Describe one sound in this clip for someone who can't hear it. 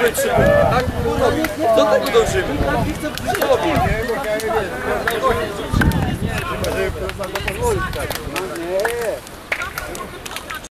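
Several young men talk and call out nearby, outdoors.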